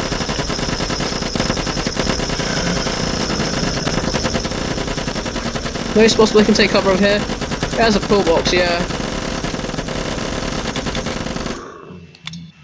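Rapid gunfire rattles without pause.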